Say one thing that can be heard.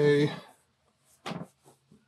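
A cloth rubs across a wooden board.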